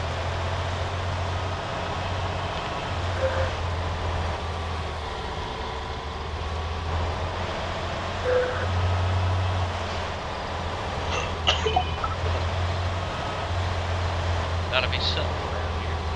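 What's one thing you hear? A vehicle engine hums steadily as it drives along a road.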